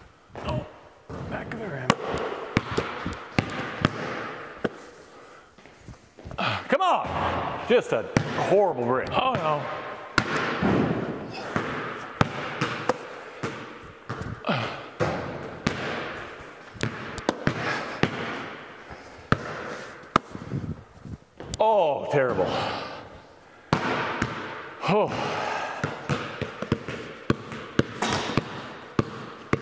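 Basketballs bounce on a hard floor with sharp, echoing thumps in a large hall.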